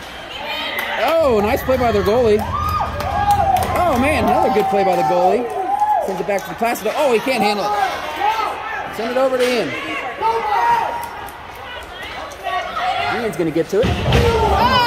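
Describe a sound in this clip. Spectators cheer and shout in an echoing rink.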